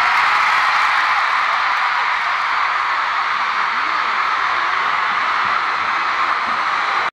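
A large crowd of young women screams and cheers loudly.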